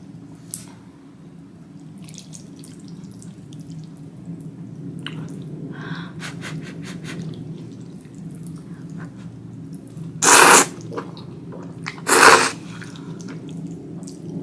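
Chopsticks clink against a bowl.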